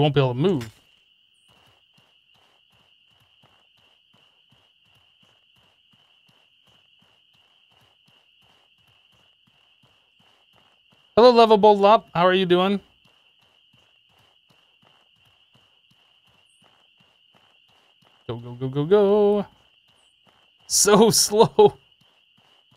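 A man talks in short bursts into a close microphone.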